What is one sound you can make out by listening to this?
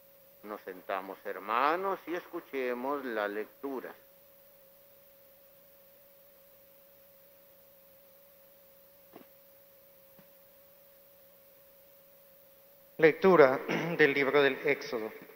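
A man speaks steadily through a microphone, with a slight echo.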